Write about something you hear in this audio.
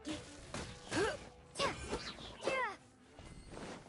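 A sword whooshes and clashes in quick slashes.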